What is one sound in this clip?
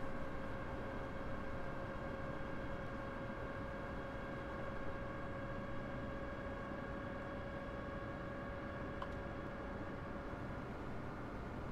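An electric train hums steadily as it runs along the tracks.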